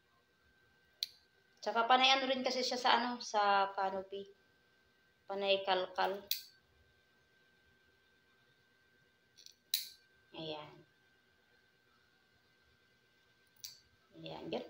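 Nail clippers snip with sharp clicks.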